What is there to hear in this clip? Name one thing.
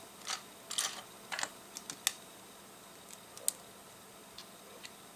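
Plastic toy bricks click and clatter as fingers handle them.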